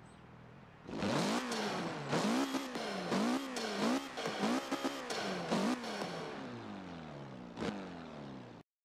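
A sports car engine revs hard in quick, repeated bursts.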